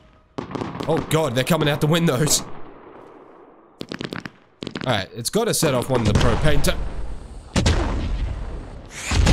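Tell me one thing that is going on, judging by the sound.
Fireworks bang and crackle.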